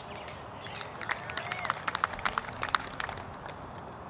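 Metal chains rattle as a disc strikes a basket.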